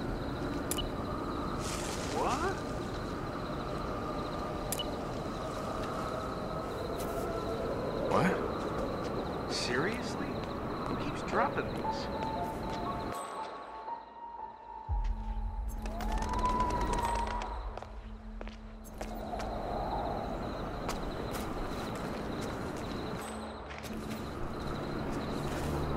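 Footsteps scuff on stone paving.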